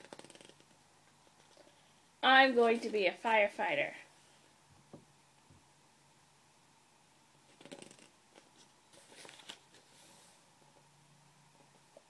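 Pages of a book turn with a soft rustle.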